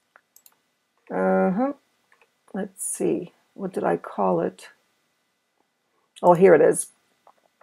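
A middle-aged woman speaks calmly into a microphone, in short phrases.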